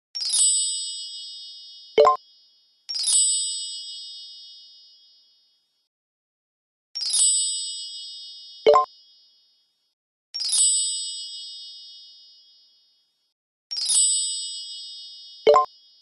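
A bright chime rings out and slowly fades, again and again.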